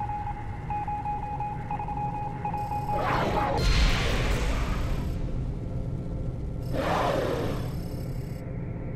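A low machine hum drones steadily.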